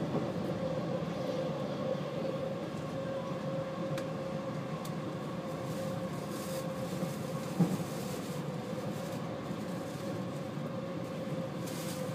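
A train rumbles steadily along the tracks.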